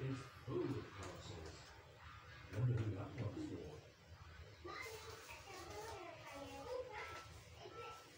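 A young woman talks softly close by.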